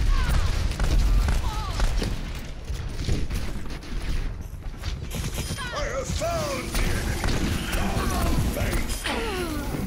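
Rapid gunshots crack again and again.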